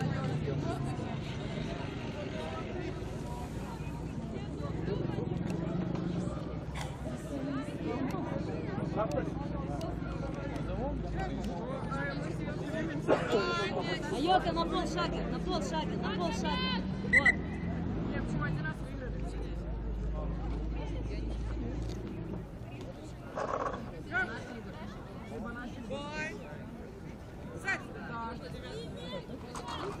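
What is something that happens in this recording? Young women talk and call out to each other outdoors at a distance.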